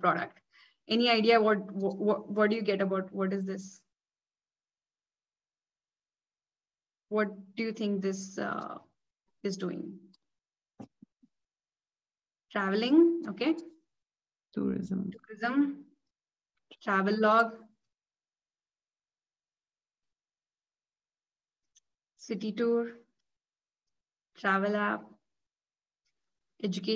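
A young woman talks calmly through a microphone on an online call, with pauses between phrases.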